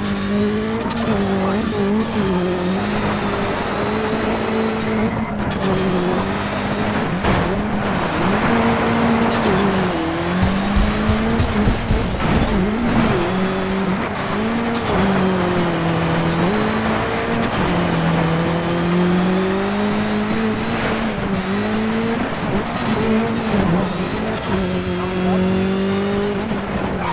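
A car engine roars and revs up and down as the car races.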